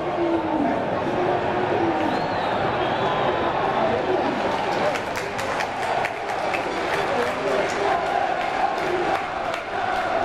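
A large stadium crowd chants and cheers outdoors.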